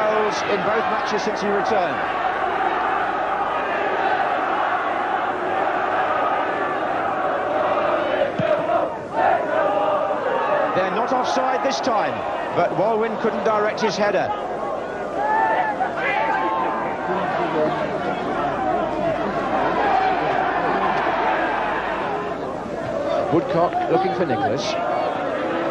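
A large crowd roars and chants steadily outdoors.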